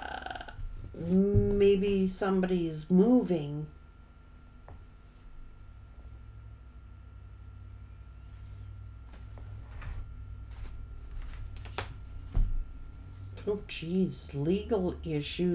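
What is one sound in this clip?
A middle-aged woman speaks calmly and close by.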